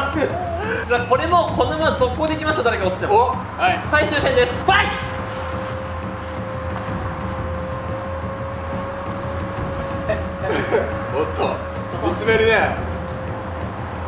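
Young men talk and shout excitedly outdoors.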